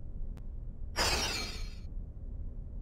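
A bright shimmering chime rings out briefly.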